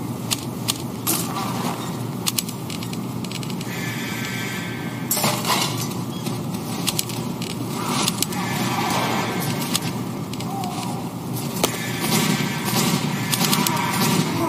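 Game menu buttons click sharply now and then.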